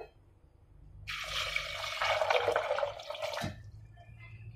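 Water pours into a pot and splashes.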